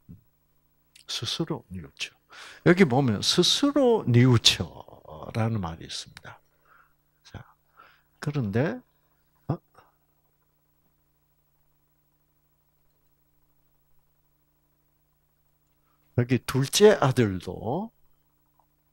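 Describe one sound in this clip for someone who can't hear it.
An elderly man speaks through a microphone in short bursts, with long pauses.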